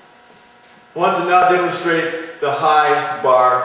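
A middle-aged man speaks calmly and clearly into a nearby microphone.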